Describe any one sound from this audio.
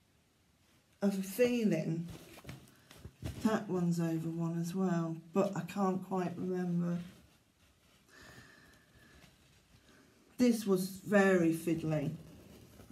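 A middle-aged woman talks calmly and closely.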